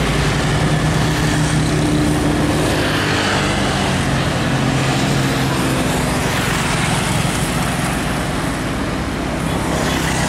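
Motorcycle engines buzz as they ride past.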